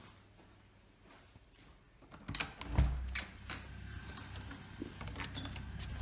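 A door handle clicks and a door opens.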